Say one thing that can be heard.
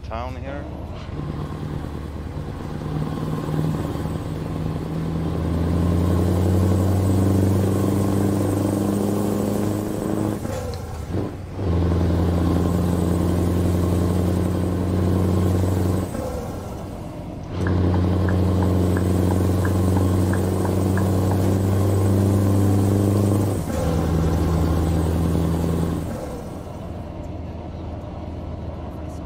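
A truck engine drones steadily, rising and falling in pitch as the gears change.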